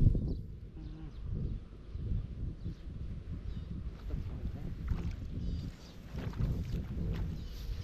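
Bare feet splash and squelch through shallow muddy water.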